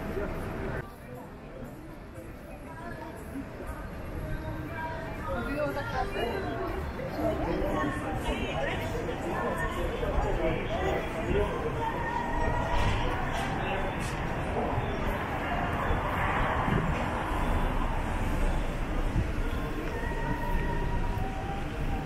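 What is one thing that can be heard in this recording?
Car traffic hums and rolls along a street.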